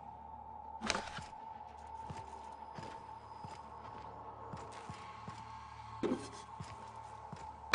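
Short game interface clicks tick now and then.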